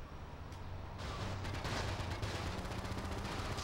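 Leaves and branches rustle and crash as a car drives through bushes.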